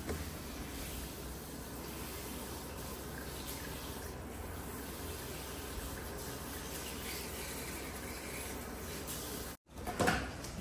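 Water runs and splashes steadily into a basin.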